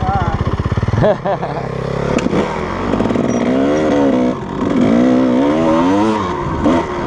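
A dirt bike engine revs up and down as the bike rides along.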